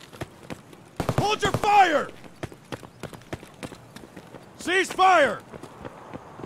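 A young man exclaims loudly into a microphone.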